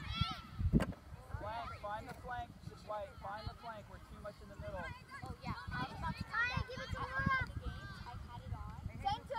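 Young girls shout and call out across an open field.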